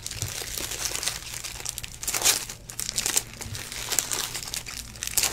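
Foil card packs crinkle and rustle close up.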